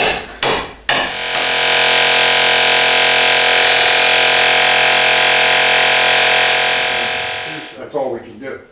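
A power tool whirs steadily at high speed.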